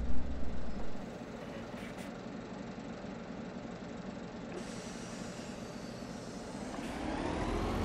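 A bus engine idles quietly.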